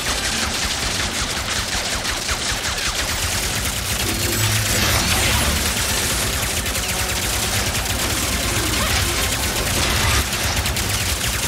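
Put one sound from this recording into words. Rapid energy blaster shots fire in quick bursts.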